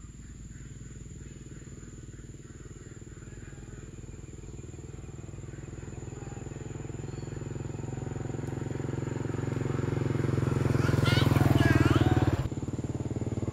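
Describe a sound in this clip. A motorbike engine hums as it approaches and passes close by.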